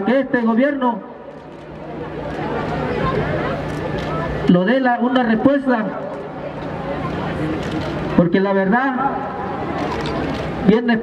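A middle-aged man shouts into a microphone in short bursts, loud through a loudspeaker outdoors.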